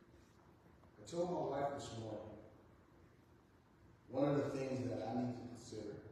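A man speaks over a loudspeaker in a large echoing hall, in slow measured phrases.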